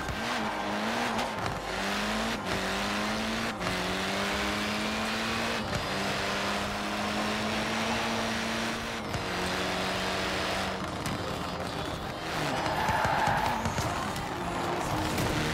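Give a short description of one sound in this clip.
Tyres skid and screech on tarmac.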